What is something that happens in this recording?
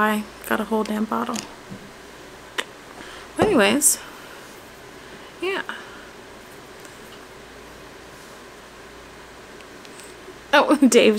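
A young woman speaks close to a microphone, in a casual, animated way.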